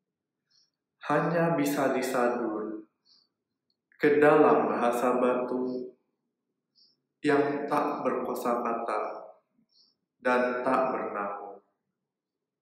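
A young man reads a poem aloud slowly, in short phrases with pauses, close to a microphone.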